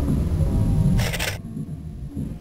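A short bright chime sounds as an item is picked up.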